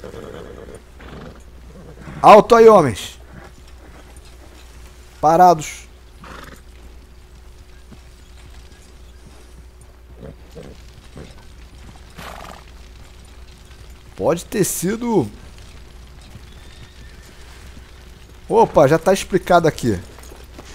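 Horse hooves clop slowly on dry ground.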